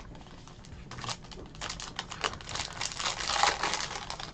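A foil card pack crinkles and rustles in hands.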